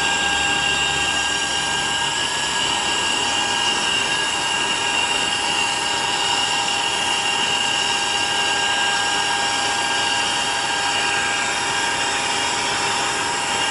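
A cargo door's hydraulics hum as the door slowly swings open.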